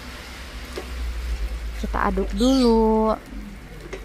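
A spatula stirs a pot of soup.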